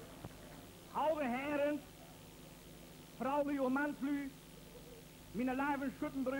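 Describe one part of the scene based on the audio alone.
A middle-aged man speaks steadily into a microphone.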